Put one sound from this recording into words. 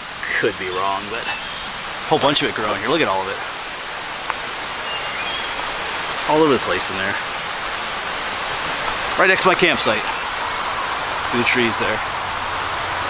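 A man speaks close to the microphone in short phrases.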